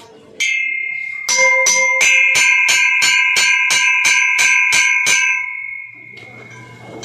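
A girl taps a metal bell with a stick, ringing it rapidly.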